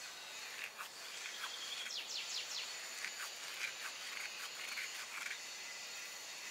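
Hands rub crumbly dried herbs together with a soft crackle.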